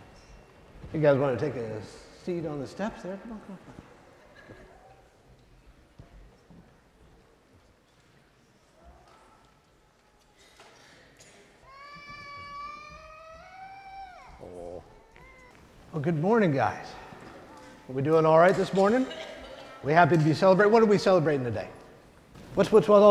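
A middle-aged man speaks warmly in a large echoing hall.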